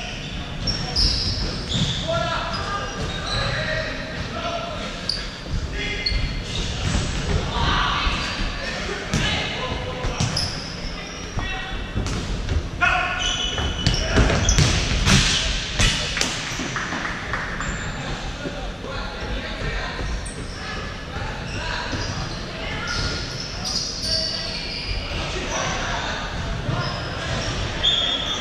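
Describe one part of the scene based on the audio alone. Players shout and call to each other in a large echoing hall.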